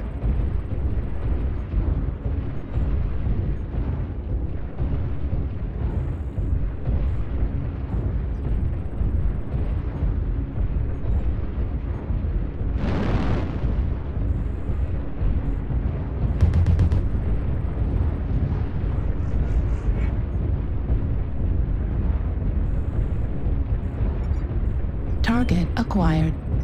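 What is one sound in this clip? Heavy metal footsteps thud in a steady rhythm.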